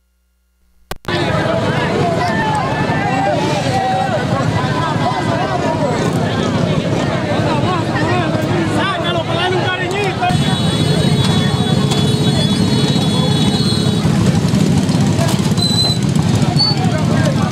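A crowd of men talks and shouts excitedly close by.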